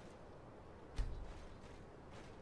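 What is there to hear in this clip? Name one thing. A sword strikes a body with a heavy, sudden thud.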